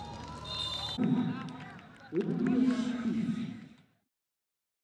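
Men cheer and shout excitedly close by.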